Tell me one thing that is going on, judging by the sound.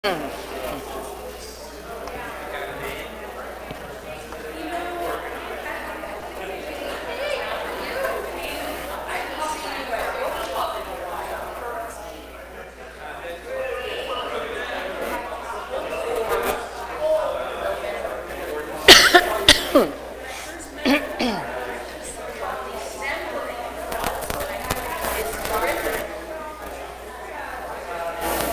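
A middle-aged speaker talks calmly in a large echoing hall.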